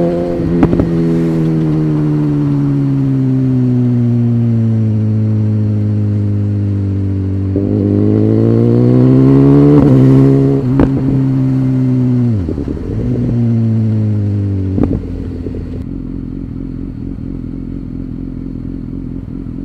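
Wind rushes past the rider's helmet.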